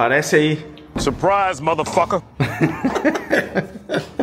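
A young man laughs loudly close by.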